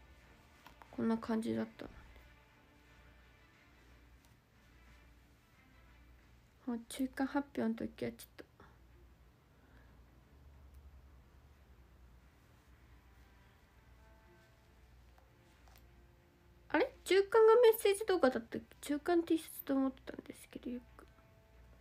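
A young woman speaks softly in short bursts, close to the microphone.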